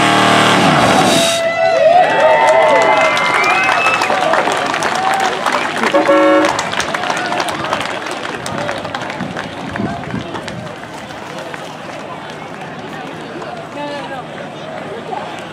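A crowd cheers and whistles outdoors.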